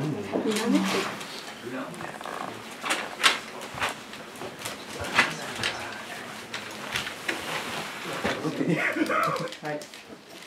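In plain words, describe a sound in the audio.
Paper and bamboo charms rustle and click.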